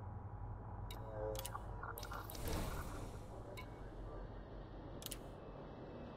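Menu selections beep and click sharply.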